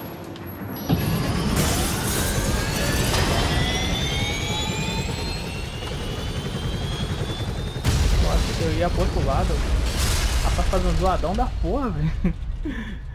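Skateboard wheels roll and grind on hard ramps and rails.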